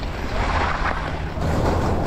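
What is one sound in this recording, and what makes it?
Bike tyres rumble over wooden boards.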